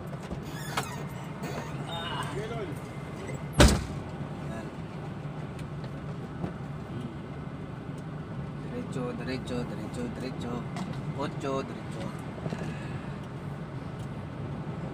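A truck engine hums steadily inside the cab.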